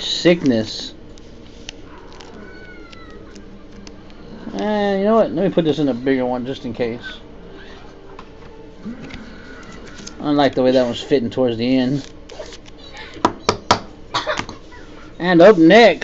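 Plastic card holders rustle and click as hands handle them.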